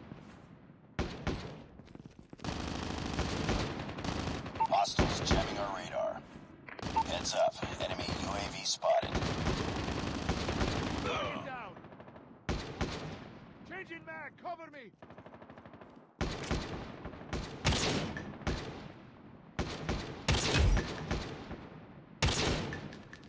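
A rifle fires loud, sharp shots that ring out and echo.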